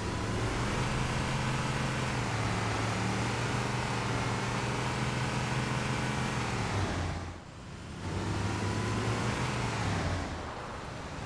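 A vehicle engine hums steadily as it drives over rough ground.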